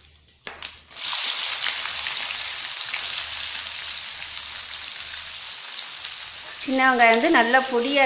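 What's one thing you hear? Onions fry in hot oil with a steady crackling sizzle.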